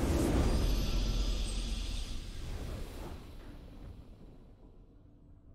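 A booming game victory fanfare swells and slowly fades away.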